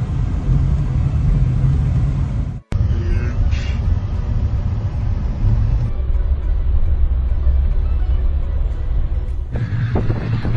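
A car engine rumbles steadily while driving.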